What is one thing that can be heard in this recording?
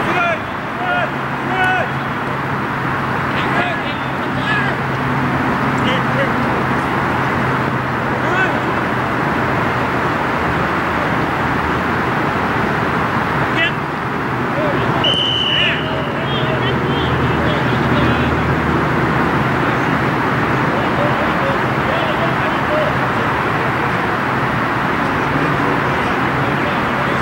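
Men shout to each other across an open field, some way off.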